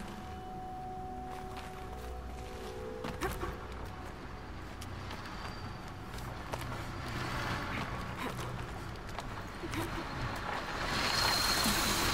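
Hands scrape and grip on rock while climbing.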